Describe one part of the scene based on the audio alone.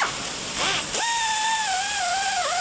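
A power drill whirs with a steady, slightly wavering pitch.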